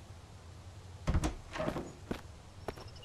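A door creaks open and bangs.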